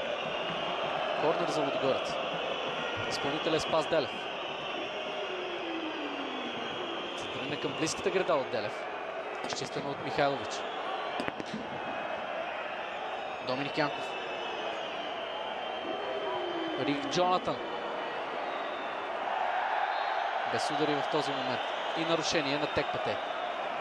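Stadium fans whistle shrilly.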